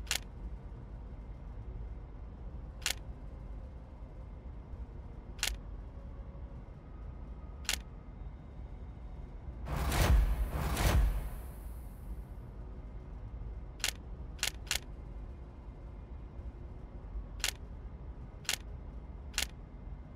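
Short, sharp clicks sound now and then as puzzle pieces snap into place.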